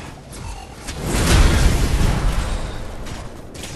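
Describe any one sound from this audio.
An electric energy blast crackles and roars.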